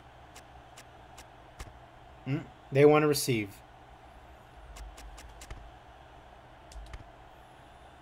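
Short electronic clicks sound as menu choices change.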